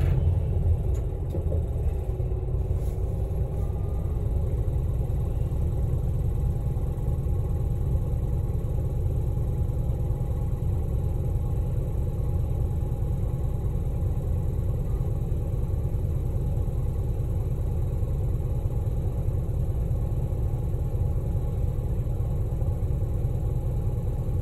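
A car engine idles with a steady low rumble, heard from inside the car.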